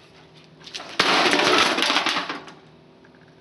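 A plastic box scrapes and thuds across concrete.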